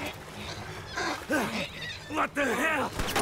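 A man shouts in anger close by.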